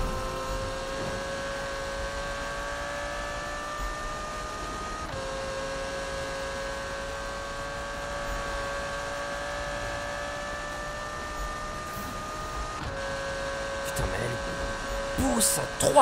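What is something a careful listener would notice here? A racing car engine whines at high speed, rising in pitch and dropping briefly at each gear change.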